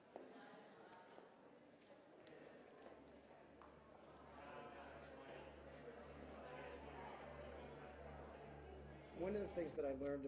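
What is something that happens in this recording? A crowd of people murmurs.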